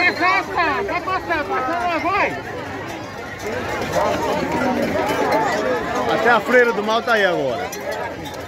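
A large crowd talks and shouts outdoors.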